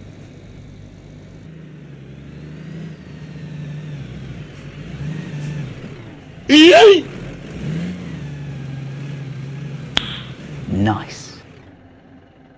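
A heavy truck engine rumbles and drones.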